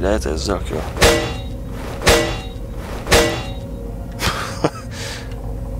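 A pickaxe strikes metal with sharp clangs.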